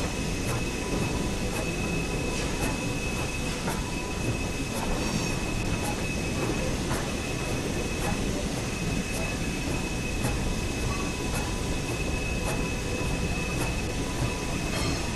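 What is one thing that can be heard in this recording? A locomotive engine rumbles steadily as it rolls slowly.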